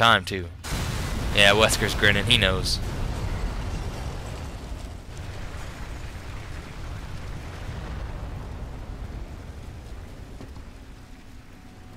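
A fire roars steadily.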